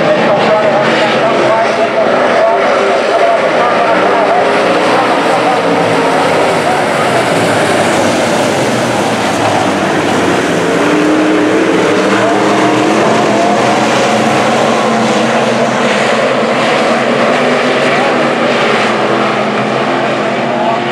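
Many race car engines roar loudly around a dirt track outdoors.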